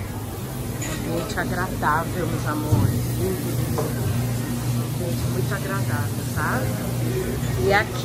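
Men talk quietly at tables nearby.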